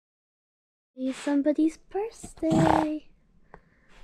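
A small dog whines and yelps up close.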